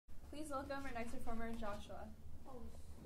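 A woman speaks calmly.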